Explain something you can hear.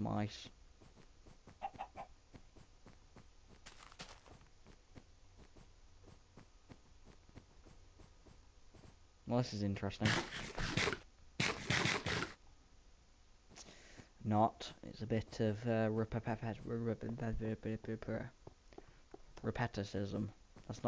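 Footsteps crunch on snow at a steady walking pace.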